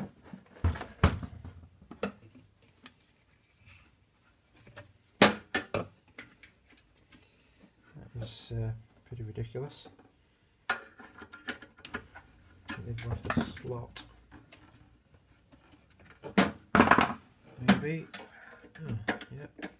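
A screwdriver clicks and scrapes against a metal case.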